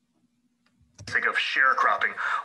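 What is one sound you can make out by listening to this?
A man speaks calmly through a loudspeaker from a played recording.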